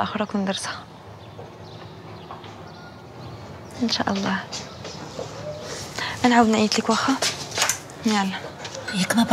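A young woman talks on a phone, close by.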